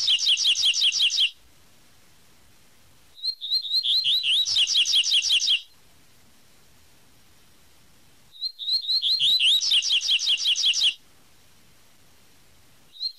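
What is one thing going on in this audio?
A small songbird sings close by in quick, high, repeated chirping phrases, with pauses in between.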